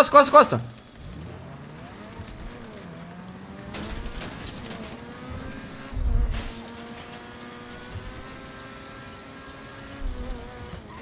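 A car engine revs and roars as the car speeds up.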